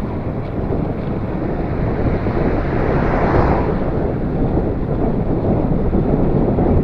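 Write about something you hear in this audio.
Wind rumbles loudly and steadily across a microphone.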